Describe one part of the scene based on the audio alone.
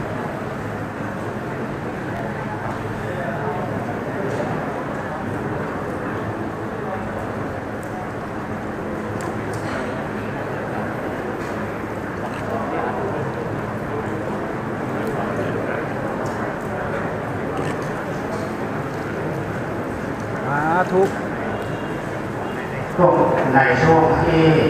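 A crowd of men and women murmurs and chatters in a large echoing hall.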